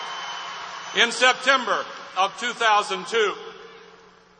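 A man speaks into a microphone to a crowd.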